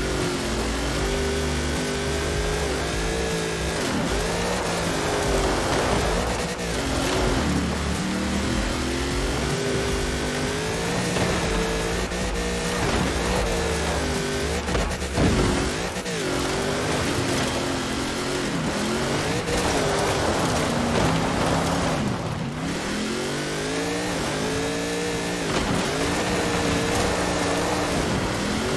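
A car engine revs hard and shifts gears up and down.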